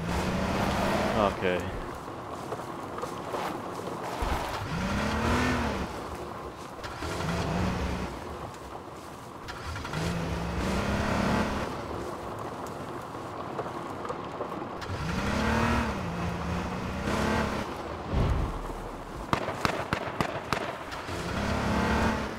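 A car engine revs up and down as the car drives over rough ground.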